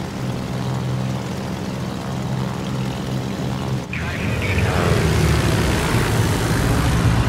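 Propeller plane engines drone steadily.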